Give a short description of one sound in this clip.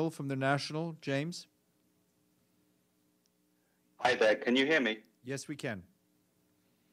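A man speaks calmly into a microphone, with short pauses.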